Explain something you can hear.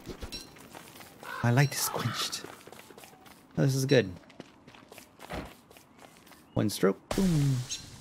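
Footsteps patter softly on the ground.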